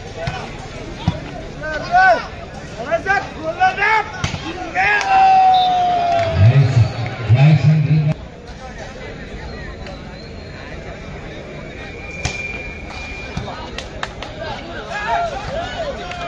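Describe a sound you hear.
A volleyball is struck hard with a sharp slap.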